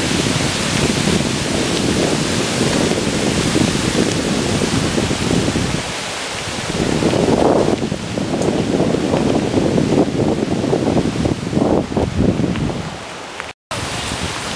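Water rushes steadily over rocks in a stream.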